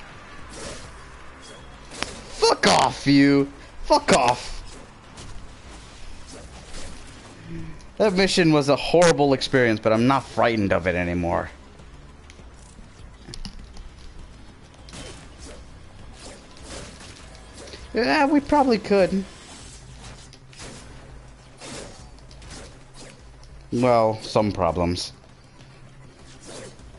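Blades slash and clash in a fast fight.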